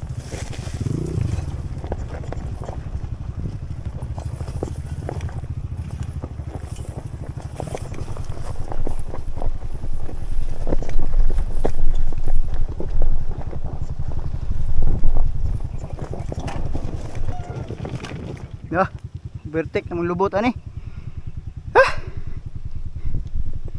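Tyres crunch and rattle over loose stones.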